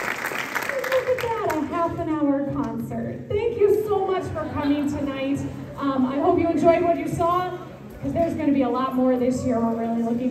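A woman speaks with animation through a microphone in a large hall.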